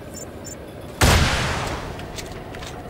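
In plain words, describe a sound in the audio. A rocket launcher fires with a loud whooshing blast that slowly fades.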